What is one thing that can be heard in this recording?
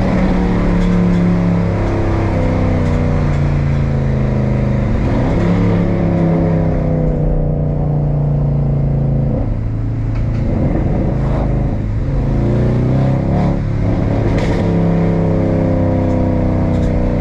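A car engine roars and drones steadily from inside the car, its pitch rising and falling with gear changes.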